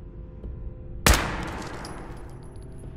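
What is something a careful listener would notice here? A single gunshot cracks loudly and echoes briefly.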